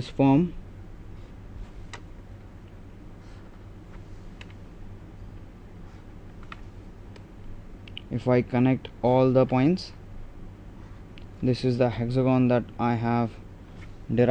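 A plastic ruler slides and taps on paper.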